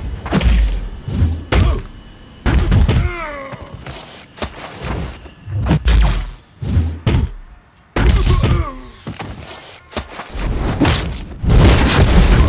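Fiery blasts whoosh and roar.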